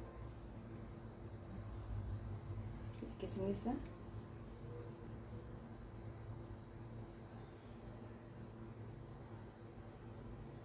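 Bits of cardamom drop softly into glasses of milk.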